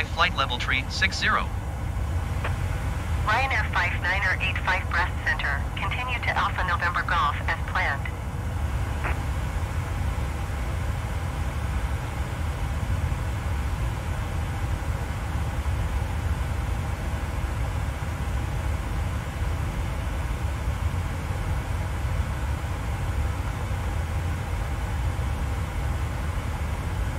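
A jet engine hums with a low, steady drone.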